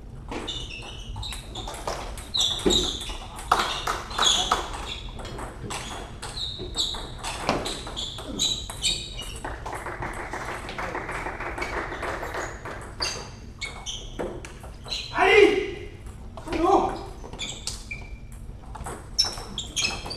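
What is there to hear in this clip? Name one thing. Footsteps squeak on the hall floor.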